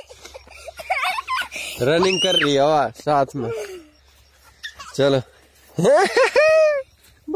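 A young girl shouts and squeals excitedly close by.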